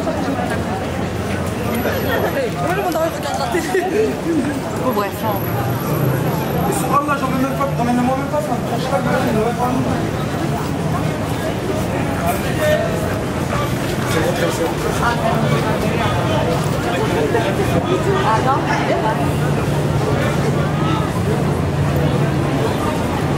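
A crowd of people chatter all around outdoors on a busy street.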